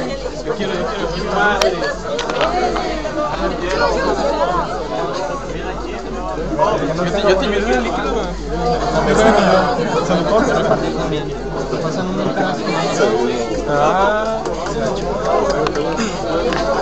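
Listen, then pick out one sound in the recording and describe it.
A group of young people chatter and laugh nearby.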